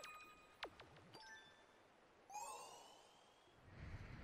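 Magical chimes sparkle.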